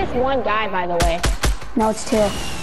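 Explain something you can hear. A gun fires several quick shots.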